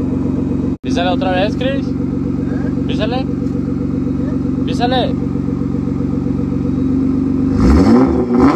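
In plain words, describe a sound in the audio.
A car engine runs.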